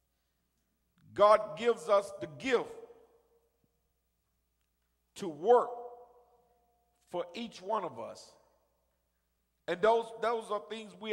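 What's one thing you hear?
A man preaches with feeling through a microphone, in bursts with pauses, in a room that echoes.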